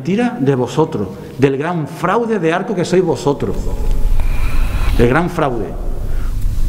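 A man speaks into a microphone with animation, close up.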